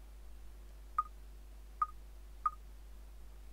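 Short menu blips chime as items are selected.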